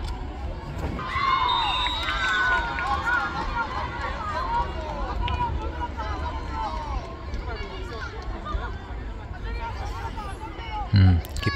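Young boys shout and call out to each other across an open field.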